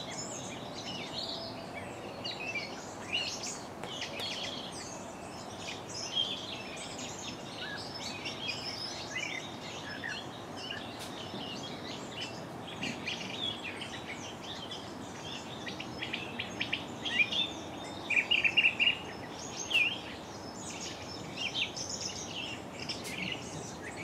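Satin ribbon rustles and crinkles between fingers.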